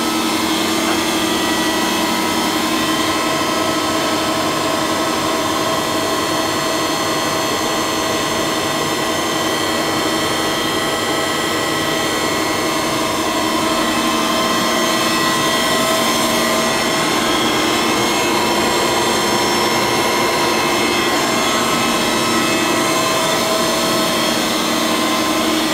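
Machinery hums loudly and steadily, with a whining drone.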